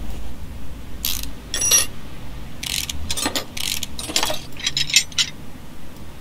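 A ratchet wrench clicks rapidly as bolts are undone.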